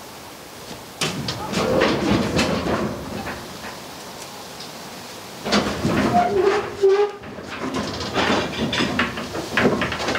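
Metal and wooden objects clatter and knock as they are moved about.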